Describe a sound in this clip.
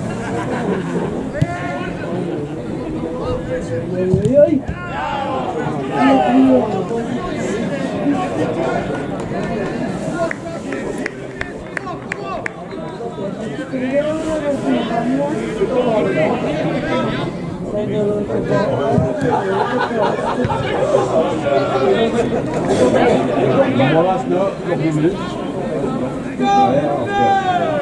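Men and women in a crowd chat and call out close by, outdoors.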